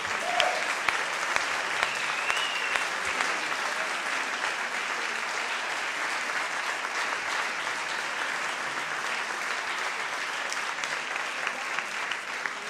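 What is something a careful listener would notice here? A crowd murmurs and chatters in a large hall.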